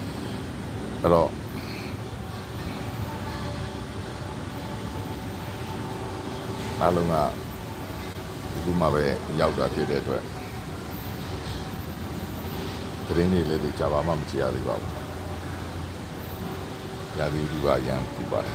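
An elderly man speaks calmly and close by, in short bursts.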